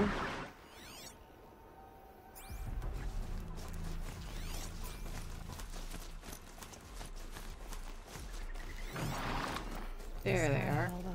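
A soft electronic scanning tone hums and sweeps.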